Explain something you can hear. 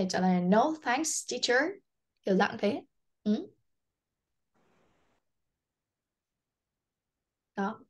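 A young woman speaks clearly and calmly into a microphone, in short phrases.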